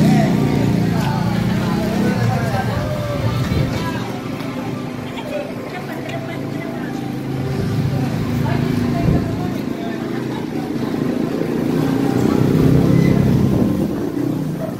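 A car engine idles nearby.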